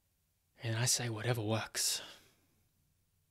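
A young man speaks calmly and close to a microphone.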